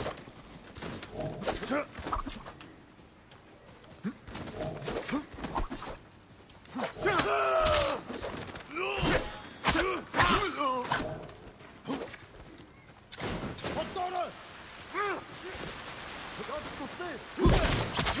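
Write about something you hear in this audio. Swords clash and ring in a fight.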